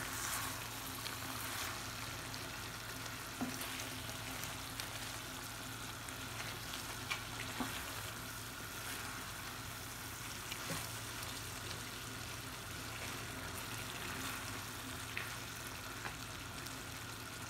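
A wooden spoon scrapes and knocks against a pan.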